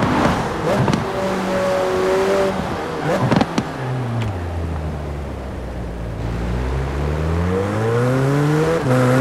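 A car engine roars, drops in pitch as the car slows, then revs up again as it speeds away.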